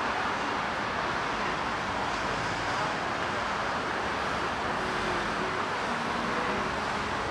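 A busy crowd murmurs nearby.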